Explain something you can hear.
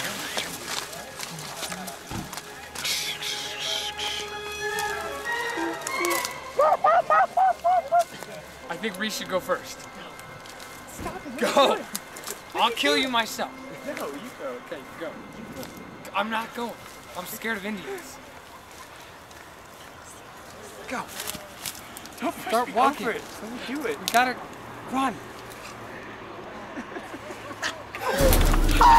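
Young men talk and laugh close by, outdoors.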